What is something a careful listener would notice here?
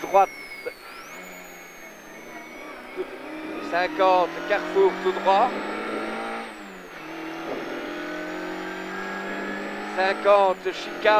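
A rally car engine roars and revs up and down from inside the cabin.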